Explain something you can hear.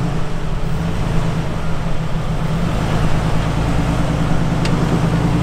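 An engine rumbles low and steady as an off-road vehicle crawls over rocks.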